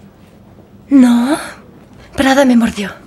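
A young woman answers briefly, close by.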